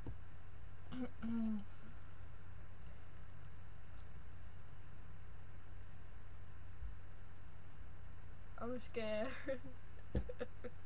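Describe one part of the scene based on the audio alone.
A young woman speaks briefly and casually, close by.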